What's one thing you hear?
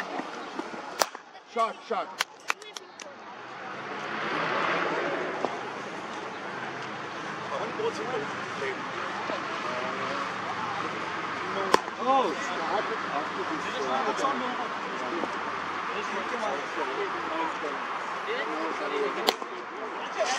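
A cricket bat sharply knocks a ball several times.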